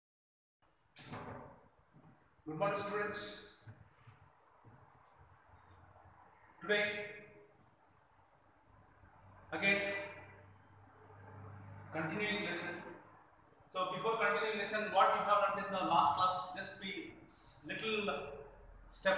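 A man lectures calmly, close by.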